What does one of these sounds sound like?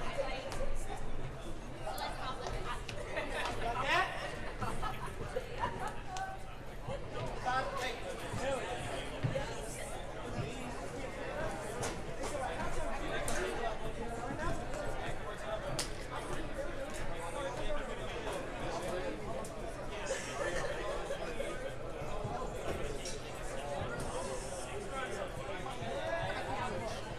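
A crowd of spectators chatters throughout, echoing in a large hall.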